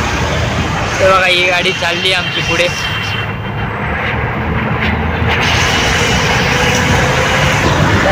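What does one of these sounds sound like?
Traffic rumbles along a busy road.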